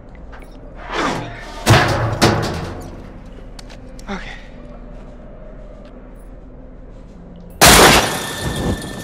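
Metal clangs loudly against a padlocked gate.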